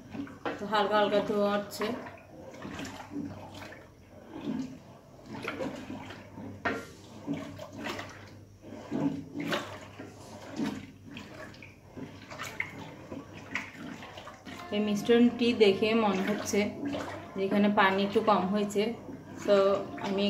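A wooden spoon stirs a thick liquid in a metal pot, scraping against its sides.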